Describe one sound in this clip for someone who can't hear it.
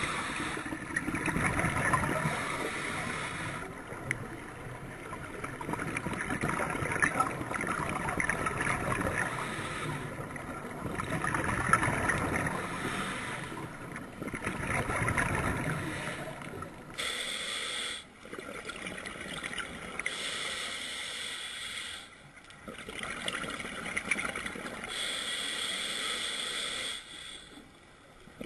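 A diver breathes in and out through a regulator underwater in slow, rasping bursts.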